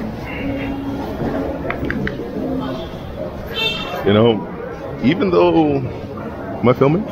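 Street chatter and city noise fill the air outdoors.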